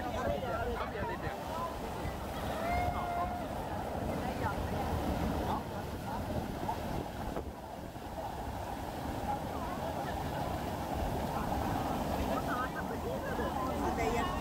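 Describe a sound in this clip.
Water rushes and splashes loudly down over rocks.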